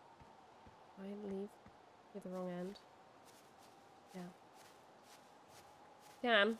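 A young woman speaks briefly and calmly into a nearby microphone.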